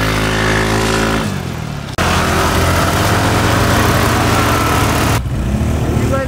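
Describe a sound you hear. A scooter engine hums and revs close by.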